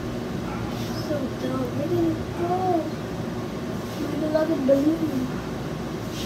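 A young girl sings softly nearby.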